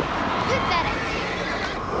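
A young girl speaks nervously and close by.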